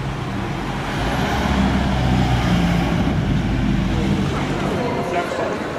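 A van engine runs as the van pulls away.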